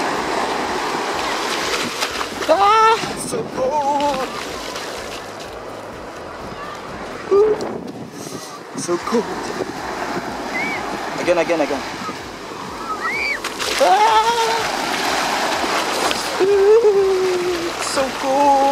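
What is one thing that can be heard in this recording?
Shallow waves wash and fizz over the sand.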